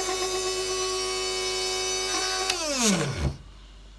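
A plastic switch clicks.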